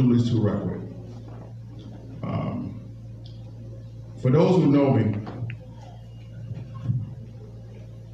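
A man speaks through a microphone in short, calm phrases with pauses.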